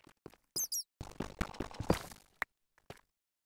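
A game pickaxe chips and breaks a stone block.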